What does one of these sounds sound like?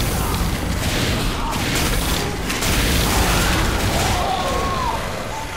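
A flamethrower roars in steady bursts.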